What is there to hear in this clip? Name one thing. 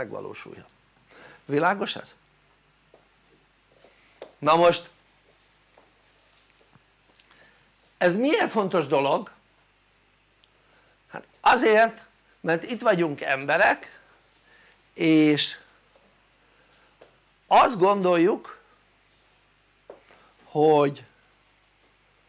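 An elderly man speaks calmly in short phrases with pauses, close by.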